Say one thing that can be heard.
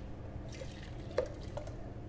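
Coffee pours into a metal jug.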